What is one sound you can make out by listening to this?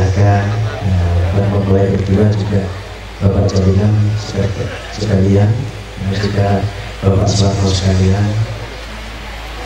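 A man speaks loudly into a microphone, heard through loudspeakers.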